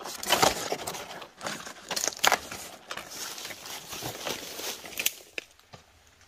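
Large leaves rustle and swish as a hand pushes through them.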